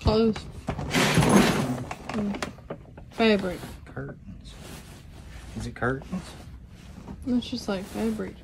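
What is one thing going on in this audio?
Fabric rustles as clothes are pressed into a suitcase.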